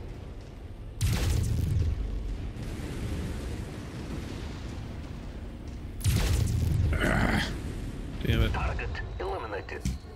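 Laser weapons fire in loud bursts.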